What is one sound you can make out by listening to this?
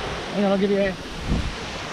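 A man calls out loudly outdoors.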